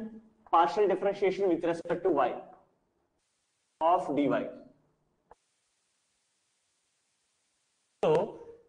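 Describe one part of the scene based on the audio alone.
A man speaks clearly and steadily close to a microphone, explaining in short bursts with pauses.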